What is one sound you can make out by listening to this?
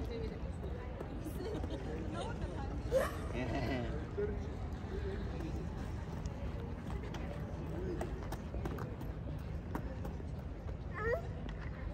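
Footsteps of a small child patter on stone outdoors.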